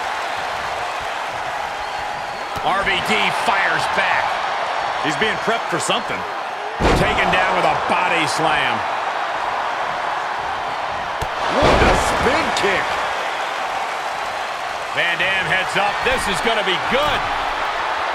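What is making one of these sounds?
A large crowd roars and cheers steadily in a big echoing arena.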